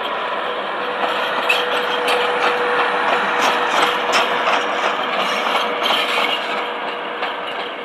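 Steel wheels clatter over rail joints as a locomotive passes.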